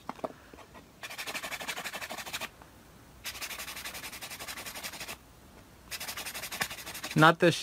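A nail file rasps quickly back and forth against a fingernail.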